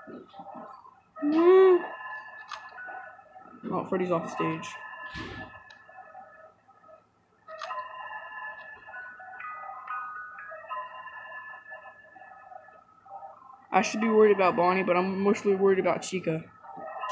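A music box plays a tinkling tune.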